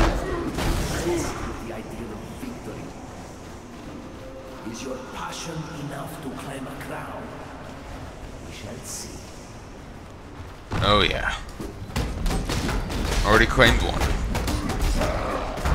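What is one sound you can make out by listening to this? Spells burst and crackle in quick bursts during a fight.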